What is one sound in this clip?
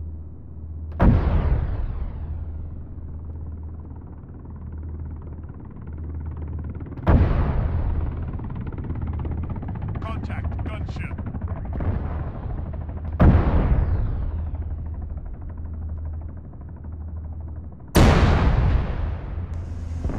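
A heavy gun fires loud booming shots that roll away in echoes.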